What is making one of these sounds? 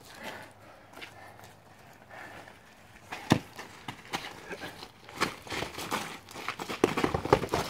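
Boxing gloves thump against punch mitts.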